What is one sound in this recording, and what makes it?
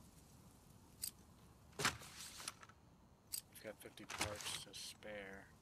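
Metal gun parts click and clack as firearms are handled.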